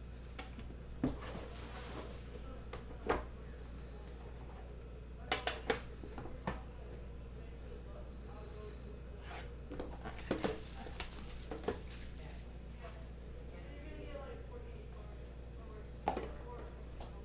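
A metal tin lid clanks and knocks against its box.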